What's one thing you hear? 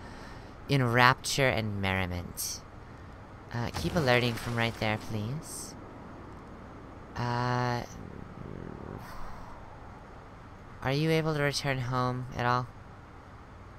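A woman talks close to a microphone, in short animated bursts.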